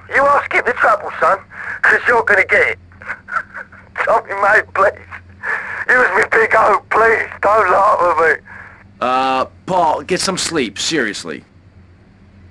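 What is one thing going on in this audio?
A man speaks pleadingly over a phone.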